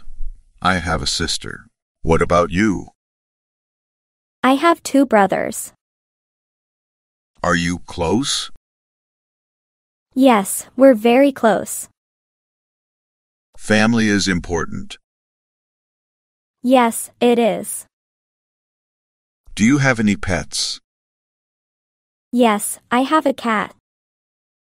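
A young woman speaks calmly and clearly, close by.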